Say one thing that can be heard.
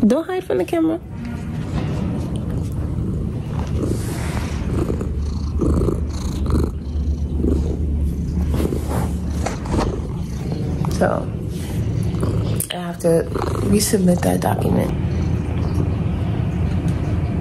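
A cat purrs loudly close by.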